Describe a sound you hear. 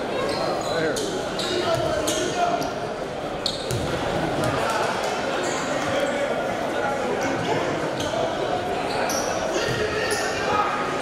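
A crowd chatters and murmurs in an echoing gym.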